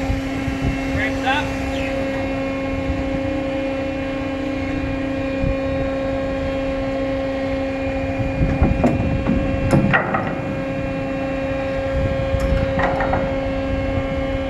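A man calls out on deck.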